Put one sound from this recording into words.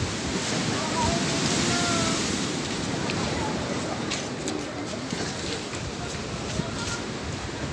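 Sea water rushes and washes steadily nearby.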